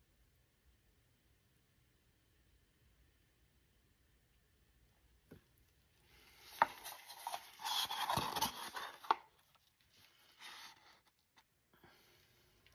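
Loose grains pour and rustle from a paper cup.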